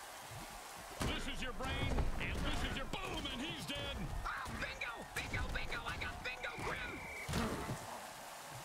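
Heavy armored players crash together with loud thuds.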